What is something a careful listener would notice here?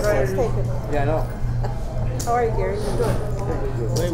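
Poker chips click softly.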